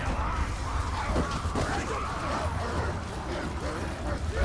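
Heavy footsteps run over rough ground.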